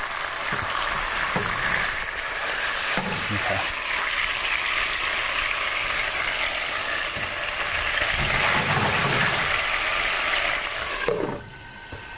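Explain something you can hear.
Food sizzles loudly in hot oil in a pan.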